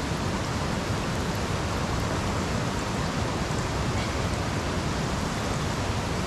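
Water pours from a jug into a pot.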